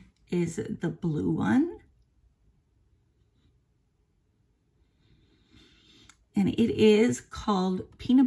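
An older woman talks with animation close to a microphone.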